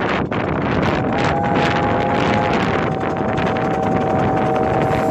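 A steam whistle blows a long chord.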